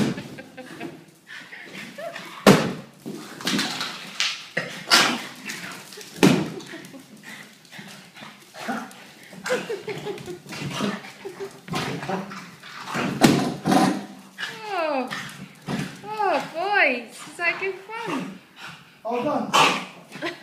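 Dog claws patter and skid on a hard floor.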